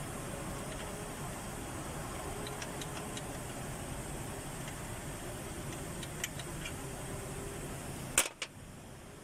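An engine idles with a steady low rumble, then cuts out.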